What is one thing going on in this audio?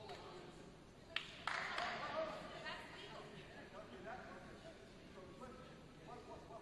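Young men call out and talk to each other at a distance in a large echoing hall.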